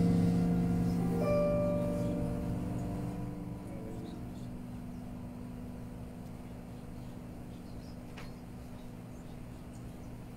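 A keyboard plays sustained chords that slowly fade away.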